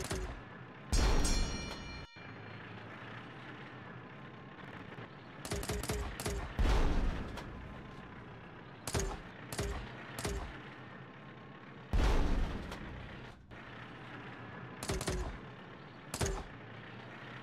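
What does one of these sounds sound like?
Game explosions boom in loud bursts.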